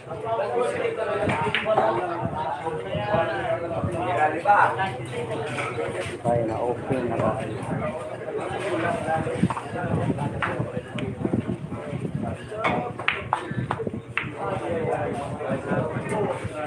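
A crowd of men and women chatter loudly nearby.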